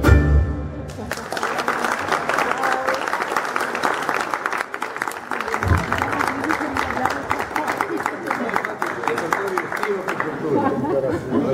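An audience claps and applauds.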